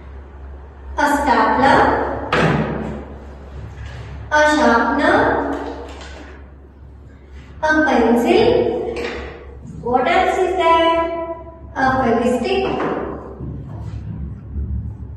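A young woman speaks clearly and with animation, in bursts with short pauses.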